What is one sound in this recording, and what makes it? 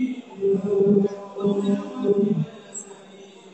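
A man chants loudly close by.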